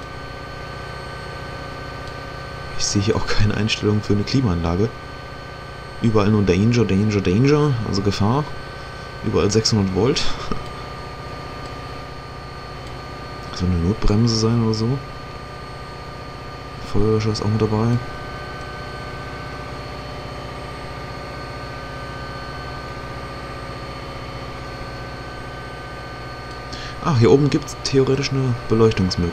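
A locomotive engine hums steadily.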